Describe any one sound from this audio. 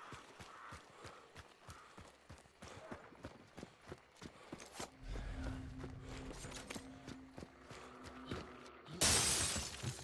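Footsteps crunch at a steady walking pace.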